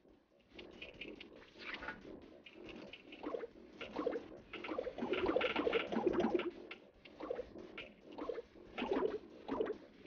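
Electronic game sound effects chirp and blip from a small handheld speaker.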